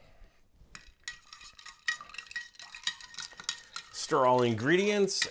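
A metal tin clinks and scrapes as it is opened.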